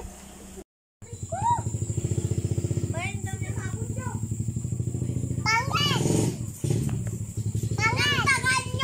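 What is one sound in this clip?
Young girls chatter and laugh nearby.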